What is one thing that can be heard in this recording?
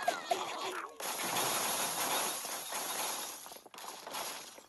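Glass and wooden blocks crash and shatter as a structure collapses.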